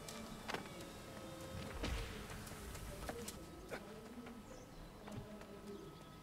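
Footsteps thud on wooden planks and stairs.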